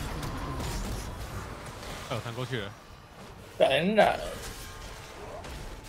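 Fantasy battle sound effects crackle and whoosh.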